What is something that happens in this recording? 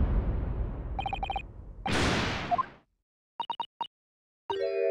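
Short electronic blips tick rapidly.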